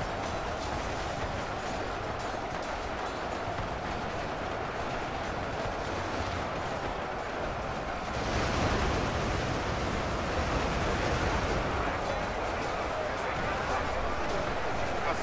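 Dense gunfire crackles and rattles without pause.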